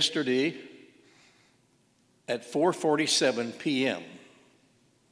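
An elderly man speaks slowly through a microphone in a large echoing hall.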